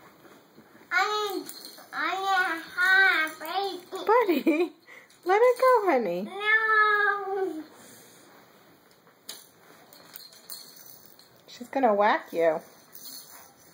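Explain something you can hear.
A baby girl squeals and babbles loudly nearby.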